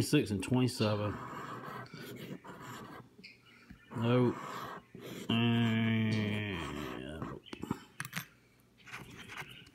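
A coin scrapes across a scratch card in short, rough strokes.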